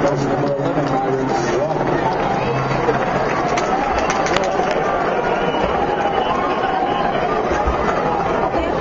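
A crowd of spectators chatters and cheers loudly in a large echoing arena.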